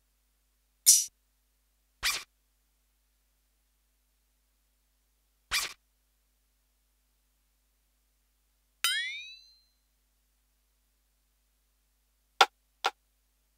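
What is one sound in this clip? Short sound samples play one at a time, with pauses between them.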